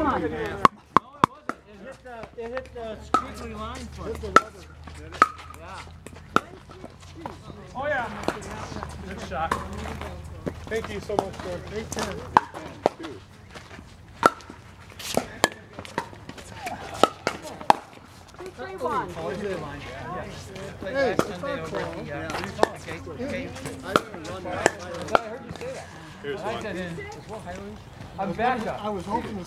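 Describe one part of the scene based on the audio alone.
Pickleball paddles pop against a plastic ball.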